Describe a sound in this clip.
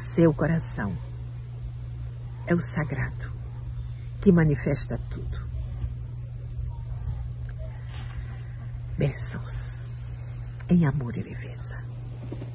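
A middle-aged woman speaks calmly and close to a microphone.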